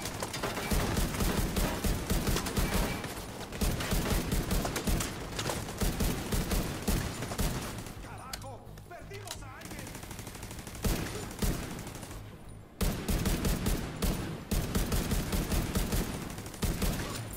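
Rifles fire in rapid bursts nearby.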